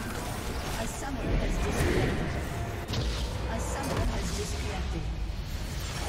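Game combat effects crash and burst.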